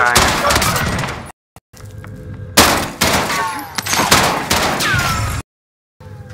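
Rapid gunshots crack loudly in a game.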